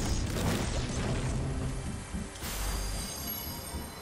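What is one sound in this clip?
A pickaxe strikes metal with sharp clangs.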